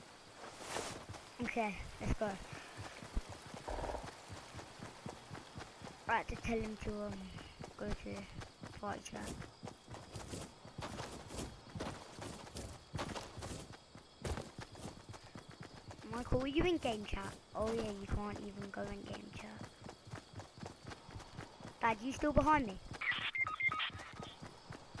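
Quick footsteps thud across grass.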